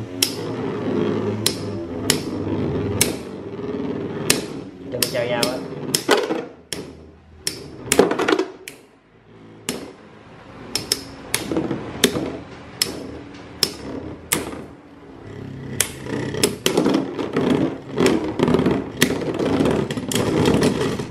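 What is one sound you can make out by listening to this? Spinning tops clack sharply against each other again and again.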